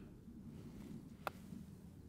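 A putter taps a golf ball once.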